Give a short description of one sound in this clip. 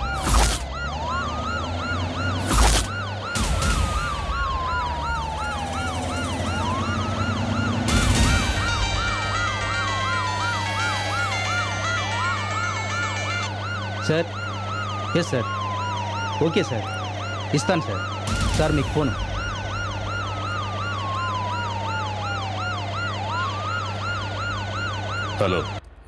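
A siren wails steadily, rising and falling.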